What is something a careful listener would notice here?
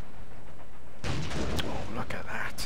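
A shell explodes with a loud roar.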